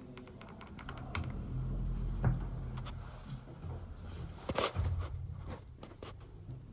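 A lift hums low as it moves.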